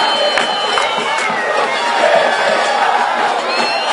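A football thuds off a goalkeeper's boot.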